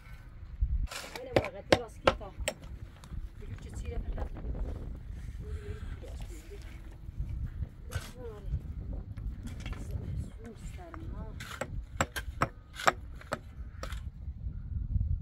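Wooden poles knock together.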